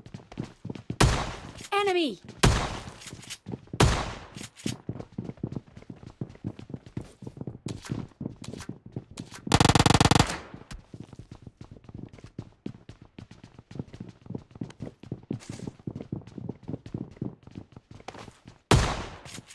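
A shotgun fires with a loud boom.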